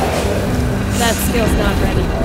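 A magic spell bursts with a bright whoosh.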